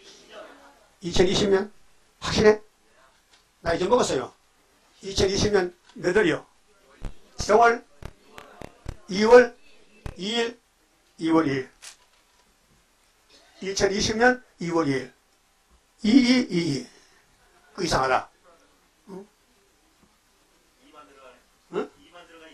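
An elderly man preaches emphatically into a microphone in short bursts.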